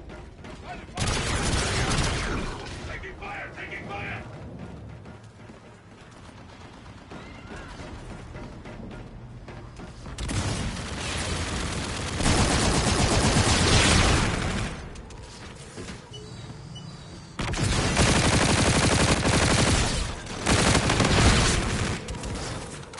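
Gunfire rattles in loud bursts.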